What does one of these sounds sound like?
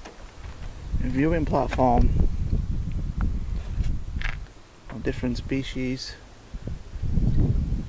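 Wind blows and buffets across open grassland outdoors.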